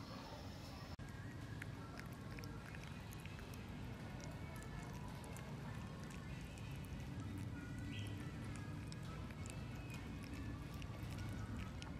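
A puppy chews and laps up food with wet, smacking sounds.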